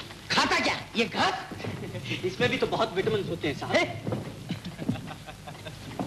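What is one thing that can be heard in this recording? A man speaks loudly and briskly in a large room.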